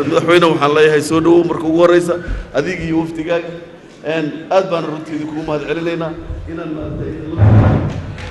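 A man speaks loudly and with animation into a microphone in an echoing hall.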